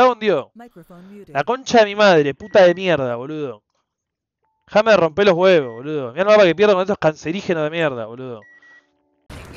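A young man talks animatedly into a close headset microphone.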